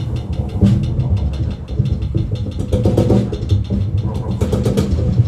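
A band plays loudly in a reverberant room.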